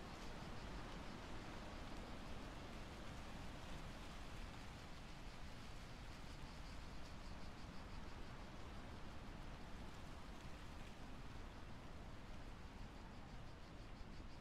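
A handheld detector ticks and crackles steadily.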